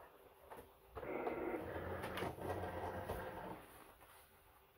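A cutting machine whirs as it pulls in a mat.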